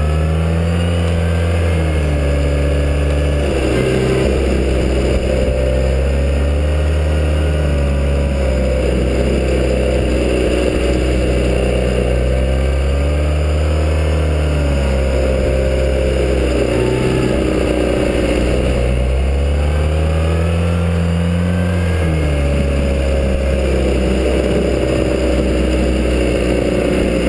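A motorcycle engine hums and its pitch rises and falls as it speeds up and slows down.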